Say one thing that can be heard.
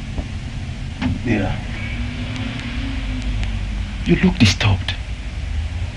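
A man speaks in a troubled tone, close by.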